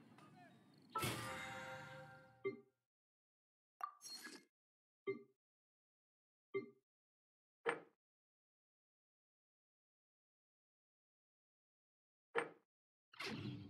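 Short game menu chimes and clicks sound several times.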